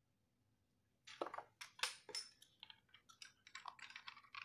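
Small metal parts clink and rattle in someone's hands.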